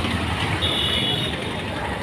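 A motor scooter rides past close by.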